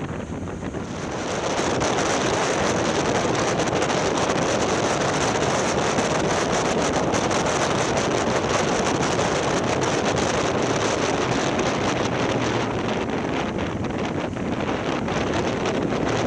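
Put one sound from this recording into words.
Wind roars loudly past the rider as speed increases.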